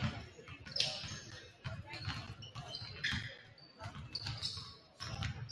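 Basketballs bounce with echoing thuds in a large hall.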